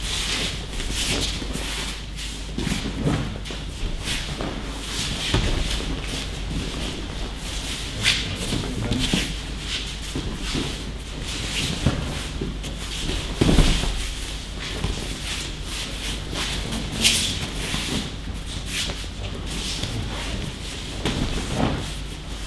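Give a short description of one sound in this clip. Bare feet shuffle and slide over a mat.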